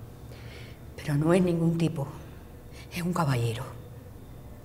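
An older woman speaks with strain and gasps.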